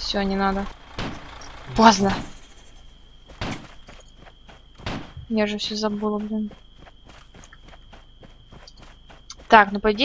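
A young woman speaks in drawn-out tones close to a headset microphone.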